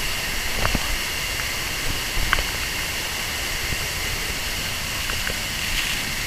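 Water splashes and drips onto rock.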